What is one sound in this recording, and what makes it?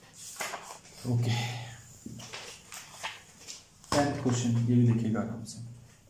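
Sheets of paper rustle as they are shuffled and turned.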